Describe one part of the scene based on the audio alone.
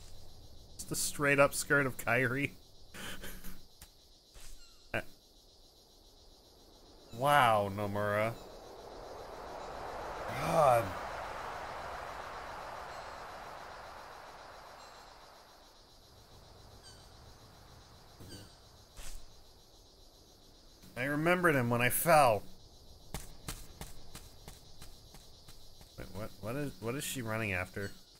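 A young man speaks into a microphone at close range.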